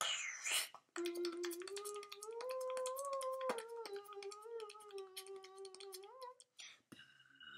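A young boy sings a held, wavering note.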